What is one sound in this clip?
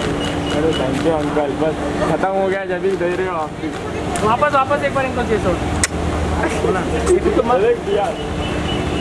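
A young woman speaks briefly and cheerfully nearby.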